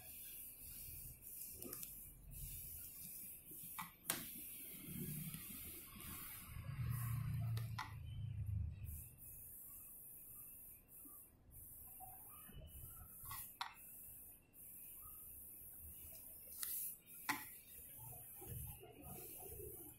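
A sheet of paper rustles and slides on a hard surface.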